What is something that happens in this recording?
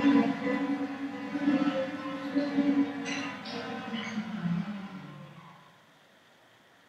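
Several acoustic guitars play a gentle melody together, heard through an online call, and fade away.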